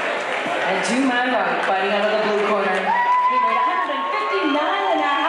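A woman announces loudly through a microphone and loudspeakers.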